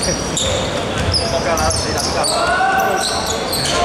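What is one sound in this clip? Young men call out to each other across an echoing gym.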